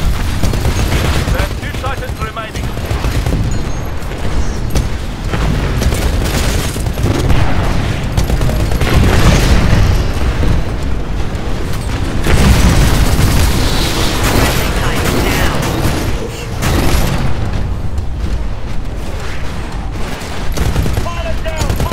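A heavy cannon fires rapid booming bursts.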